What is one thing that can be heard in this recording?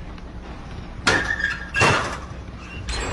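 A metal locker door creaks and bangs shut.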